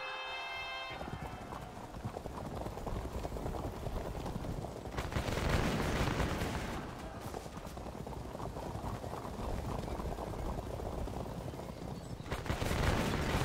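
Horses gallop and clash in a battle din.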